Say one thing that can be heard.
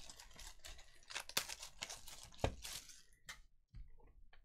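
Plastic wrap crinkles and rustles as hands handle a box.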